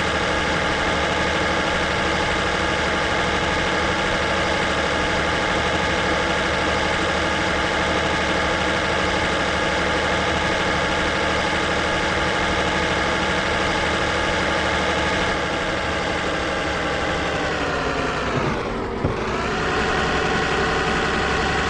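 A heavy truck engine drones steadily, then drops in pitch and climbs again as the gears shift.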